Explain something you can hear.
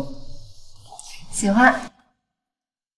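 A young woman answers warmly and close by.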